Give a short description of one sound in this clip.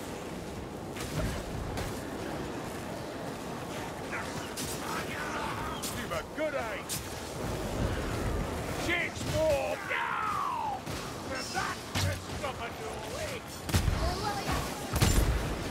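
A sword swings and strikes with sharp hits.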